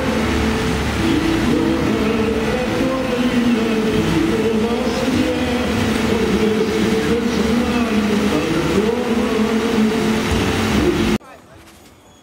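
Fountain jets splash and rush steadily into a pool.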